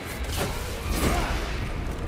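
A large explosion roars.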